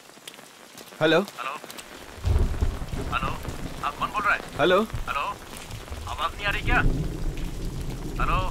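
A man speaks in a low, tense voice on a phone.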